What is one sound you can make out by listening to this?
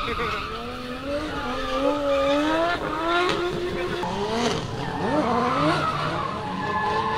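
A car engine revs hard and roars, rising and falling in pitch.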